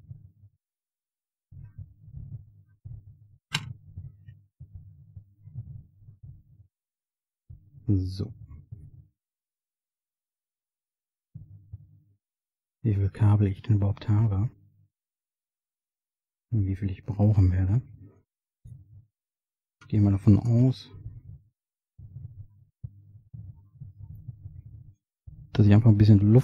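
Hands handle thin wires and parts with soft rustles and taps, close by.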